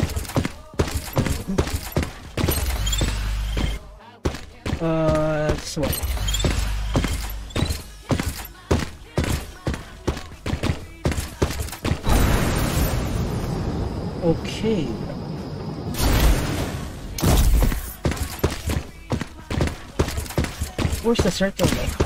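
Rapid gunfire crackles in sharp bursts.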